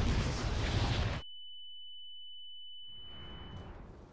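A shotgun fires.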